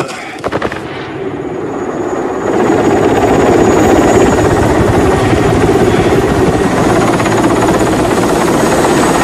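A helicopter's rotor thumps loudly overhead, growing louder.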